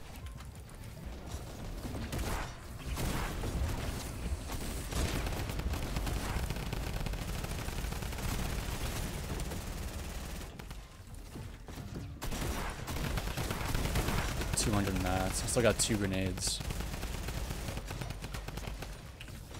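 Building pieces in a video game snap into place in quick succession.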